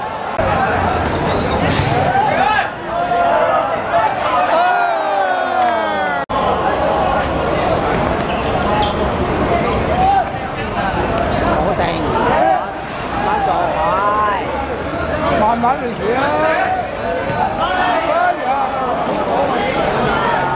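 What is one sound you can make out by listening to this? A crowd of spectators shouts and cheers loudly outdoors.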